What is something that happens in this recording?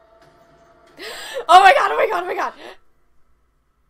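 A young woman screams and exclaims excitedly close by.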